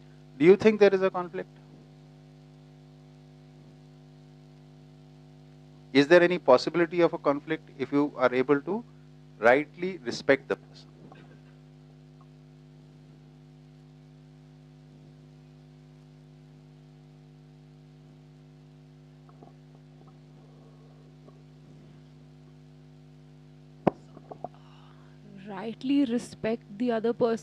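A man speaks calmly, heard through a microphone, with long pauses.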